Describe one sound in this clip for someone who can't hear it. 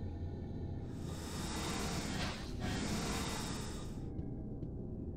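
An elevator door slides open with a rushing whoosh.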